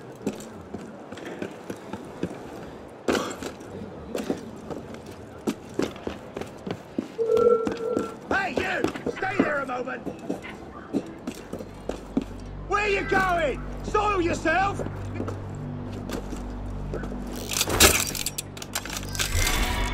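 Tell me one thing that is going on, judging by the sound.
Footsteps tap quickly across roof tiles.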